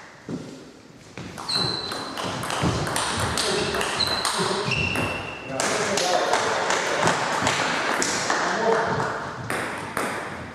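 A table tennis ball clicks quickly back and forth off paddles and the table in an echoing hall.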